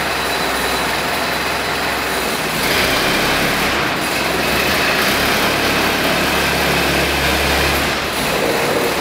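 A forklift engine hums steadily as it drives slowly forward.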